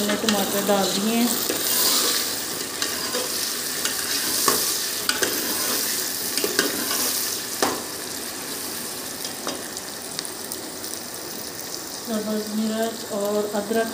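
A metal ladle scrapes and clinks against the inside of a pot.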